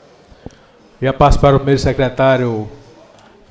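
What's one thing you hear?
A middle-aged man speaks into a microphone over a loudspeaker system.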